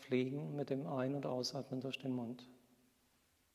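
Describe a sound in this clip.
A man speaks calmly and briefly nearby.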